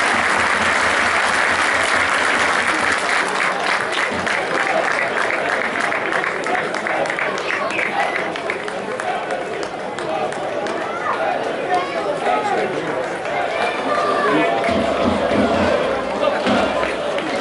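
A large stadium crowd cheers and chants loudly outdoors.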